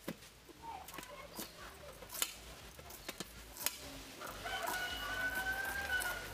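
A knife slices through a pineapple's tough skin.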